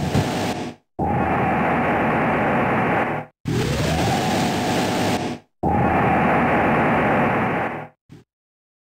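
A deep, noisy rumble swells in repeated bursts as a huge creature rises.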